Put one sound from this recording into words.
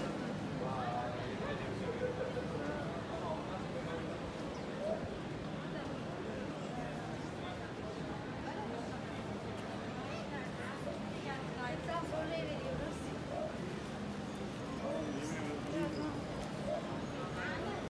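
A crowd of people chatter at a distance outdoors.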